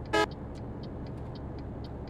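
A truck rumbles past close by.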